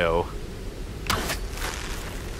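An arrow is shot from a bow with a sharp twang.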